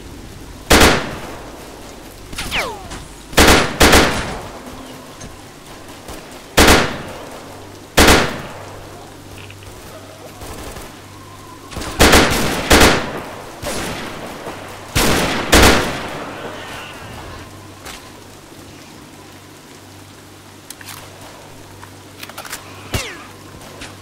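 Rifle shots crack loudly, one after another, each with a short echo.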